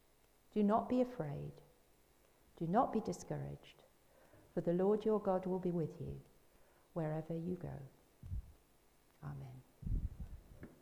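A woman speaks calmly at a microphone.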